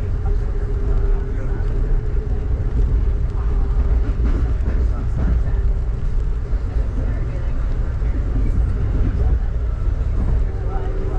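Rain patters against a window close by.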